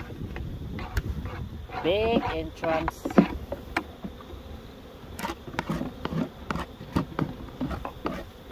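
Wooden hive parts knock and clack.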